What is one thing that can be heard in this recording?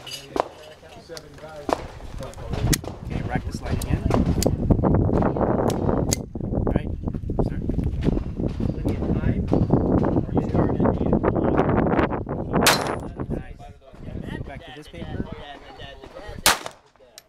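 A handgun fires sharp single shots outdoors.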